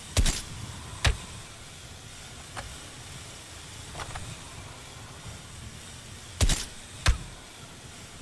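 A rifle bolt clacks after each shot.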